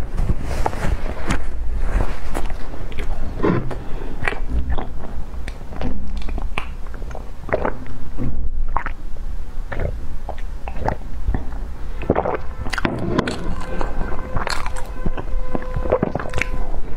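A young woman chews loudly and wetly close to a microphone.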